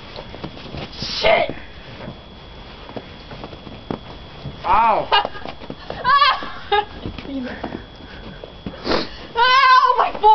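Young women shout and laugh loudly outdoors.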